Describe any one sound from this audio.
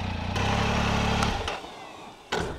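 A motorcycle engine idles with a steady low hum.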